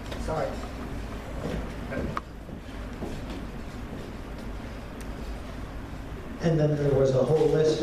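An elderly man speaks close by.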